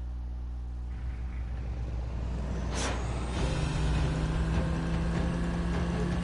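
A car engine revs and roars while driving.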